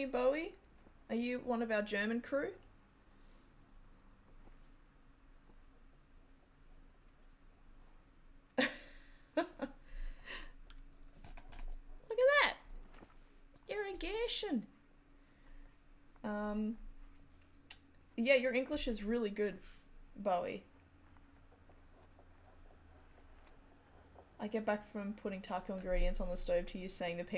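A woman talks calmly and casually into a close microphone, pausing now and then.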